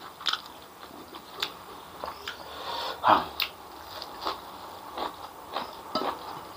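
A man's fingers squish and tear through food.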